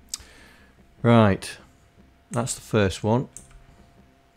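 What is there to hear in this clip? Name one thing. A man speaks briefly close to a microphone.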